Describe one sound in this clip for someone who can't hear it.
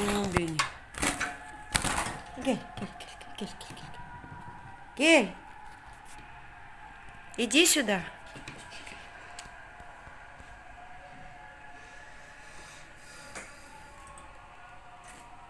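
A wire cage rattles and clicks as a hand touches it.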